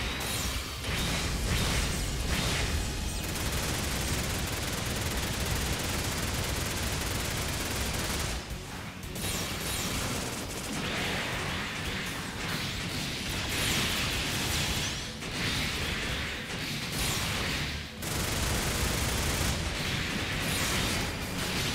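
Beam weapons fire and blast in rapid bursts.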